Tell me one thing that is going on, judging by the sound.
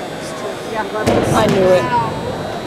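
A gymnast lands with a heavy thud on a mat.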